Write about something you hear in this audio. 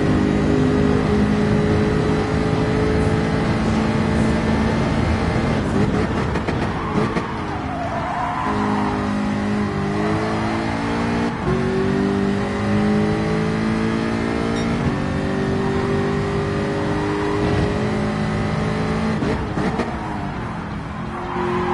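A racing car engine roars steadily, its pitch rising and dropping as it shifts gears.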